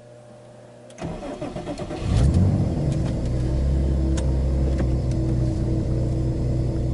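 A car engine cranks, starts and idles with a deep rumble.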